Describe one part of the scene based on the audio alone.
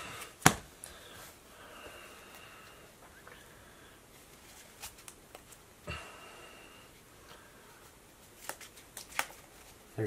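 Playing cards shuffle and tap in a pair of hands.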